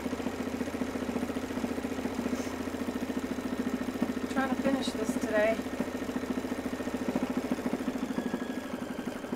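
An embroidery machine stitches with a fast, steady rattling hum.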